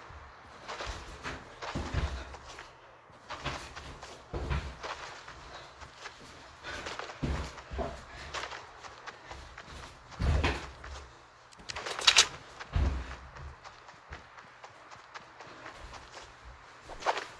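Footsteps tread steadily through grass.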